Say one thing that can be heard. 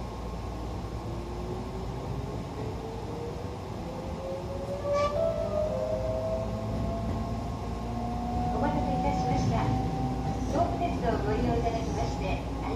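A train's electric motor whines, rising in pitch as it speeds up.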